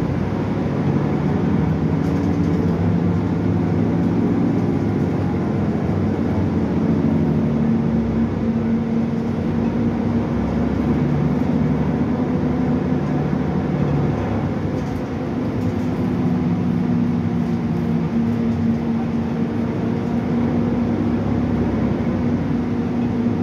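A bus engine hums and drones steadily while driving.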